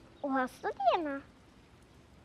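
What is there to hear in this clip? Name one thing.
A young girl speaks in a high, lively voice close by.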